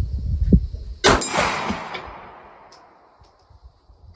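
A pistol fires a single loud shot that echoes outdoors.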